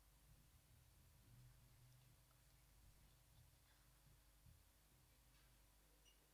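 A band plays music softly.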